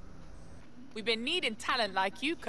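A young woman speaks casually, close by.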